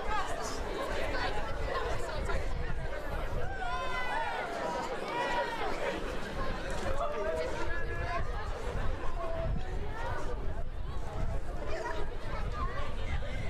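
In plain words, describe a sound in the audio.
A large crowd of young people chatters and calls out outdoors.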